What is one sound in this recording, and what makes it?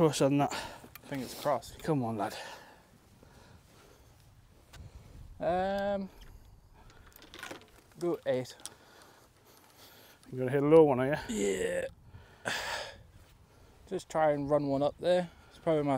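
A man talks calmly and close to a microphone.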